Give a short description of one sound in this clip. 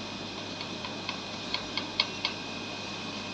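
A screwdriver clicks faintly against metal.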